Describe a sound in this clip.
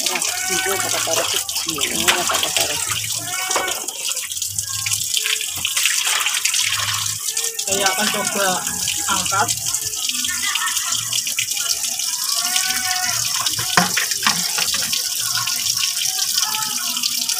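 Water splashes as a large fish thrashes.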